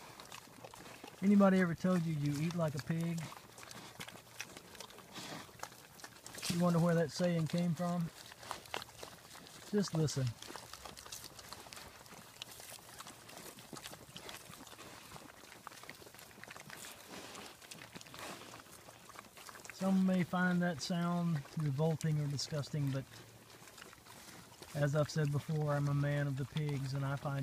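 Pigs root and snuffle through dry leaves and wood chips.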